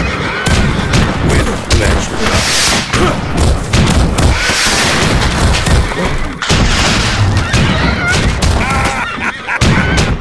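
Swords clash and clang in a busy battle.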